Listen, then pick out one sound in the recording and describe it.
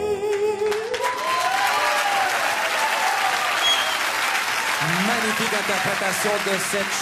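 A large crowd cheers and applauds in a big hall.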